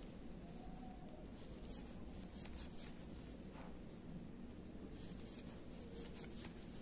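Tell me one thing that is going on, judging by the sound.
A crochet hook softly scratches and clicks through yarn.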